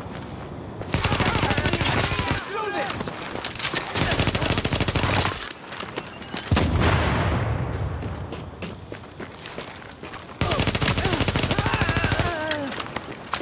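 Gunfire rattles in loud, rapid bursts.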